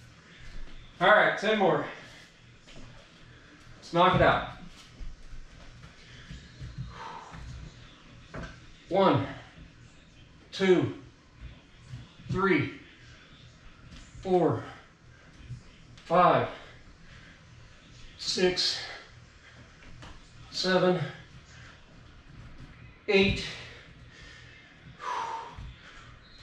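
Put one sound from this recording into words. A man counts aloud nearby, one short word every couple of seconds.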